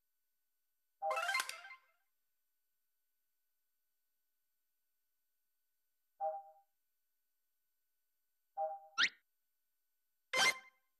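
Short electronic game chimes and bleeps sound now and then.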